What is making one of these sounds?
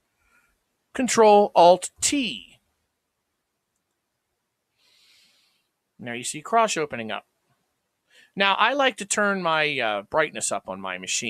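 A man talks into a close microphone, in short bursts with pauses.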